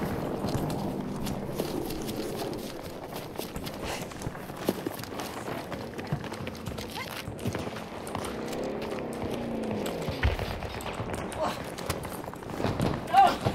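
Footsteps run quickly over dry ground and gravel.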